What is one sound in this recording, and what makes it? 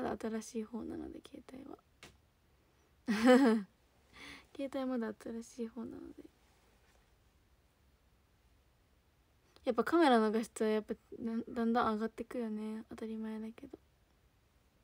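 A young woman speaks softly and cheerfully close to a microphone.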